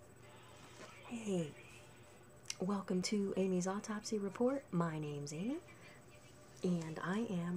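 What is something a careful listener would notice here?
A woman talks calmly and close up into a microphone.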